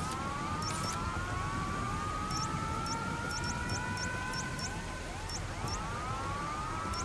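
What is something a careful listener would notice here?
Short electronic ticks sound again and again.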